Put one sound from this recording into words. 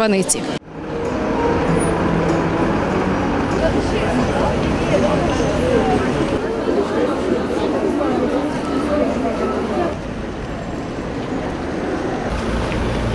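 Many footsteps shuffle on pavement.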